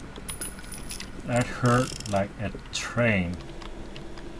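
A revolver is reloaded with metallic clicks.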